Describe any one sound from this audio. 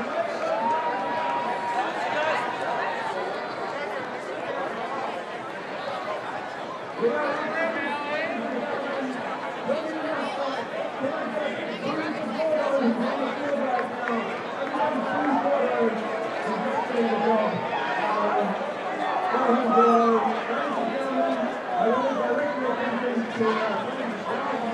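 A crowd of spectators chatters and calls out nearby, outdoors.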